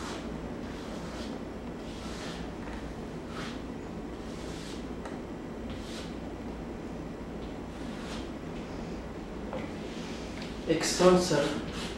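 Chalk scrapes and taps on a board.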